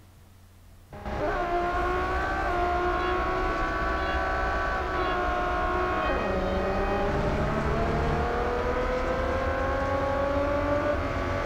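A racing car engine roars steadily and slowly rises in pitch.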